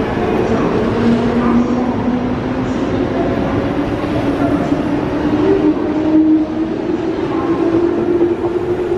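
Train brakes squeal in a long rising whine.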